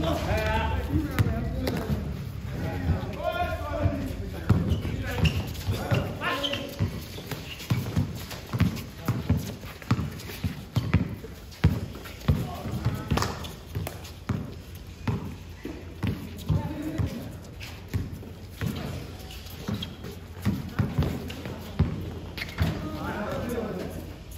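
Sneakers squeak and scuff on the court.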